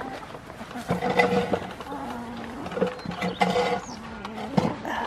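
A goat bleats loudly close by.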